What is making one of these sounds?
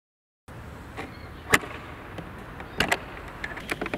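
Metal latches on a guitar case click open.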